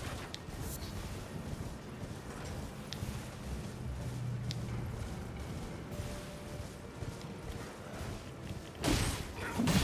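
A horse gallops with thudding hooves.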